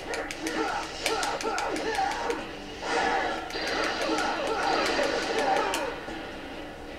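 Swords clash and clang in quick succession.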